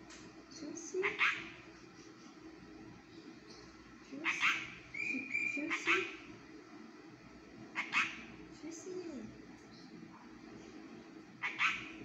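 A small bird chirps and whistles loudly in short bursts, close by.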